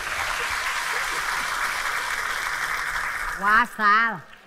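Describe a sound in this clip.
An audience claps and cheers.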